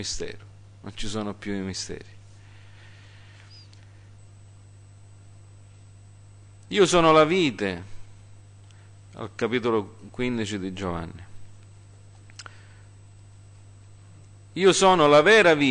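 A middle-aged man speaks slowly and deliberately into a microphone, with pauses.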